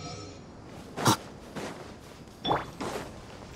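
A bright magical chime bursts out and rings.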